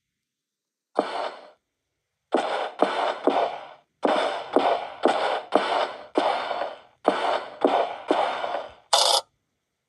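Footsteps thud steadily across a wooden floor.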